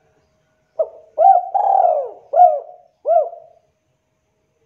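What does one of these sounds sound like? A spotted dove coos in a short phrase.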